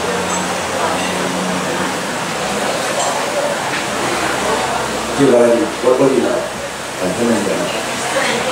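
A band plays live music in an echoing room.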